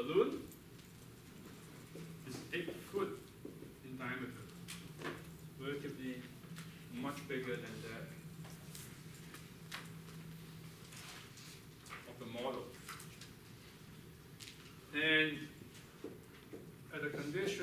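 A man lectures in a large room, heard from a distance with some echo.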